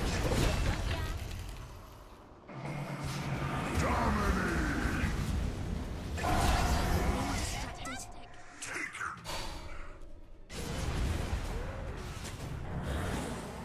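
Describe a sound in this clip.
Magic blasts and fiery bursts crackle in a fast fight.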